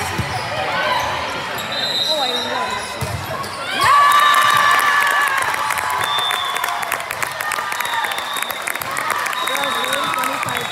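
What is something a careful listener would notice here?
A crowd of young players and spectators cheers and shouts in a large echoing hall.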